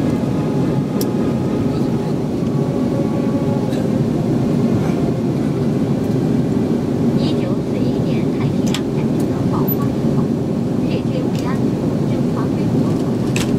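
A jet airliner's engines roar steadily inside the cabin.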